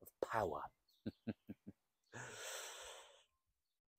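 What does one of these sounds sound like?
A young man laughs softly close to a microphone.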